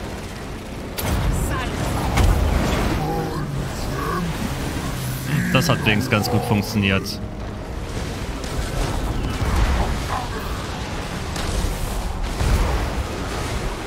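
Blasts and impacts boom now and then.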